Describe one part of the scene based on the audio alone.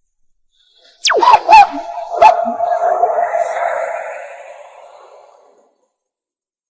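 A man screams in anguish.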